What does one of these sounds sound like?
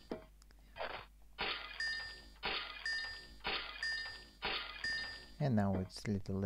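Bright electronic zaps sound in a repeating pattern as lamps light up one after another.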